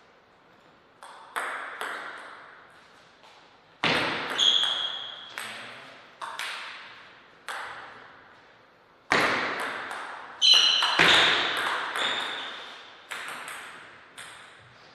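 Table tennis hits ring out in an echoing hall.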